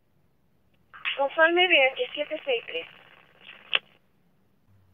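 A man speaks briefly through a crackling two-way radio.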